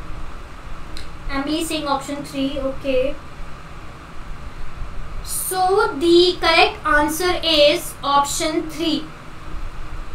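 A young woman speaks calmly into a close microphone, pausing between phrases.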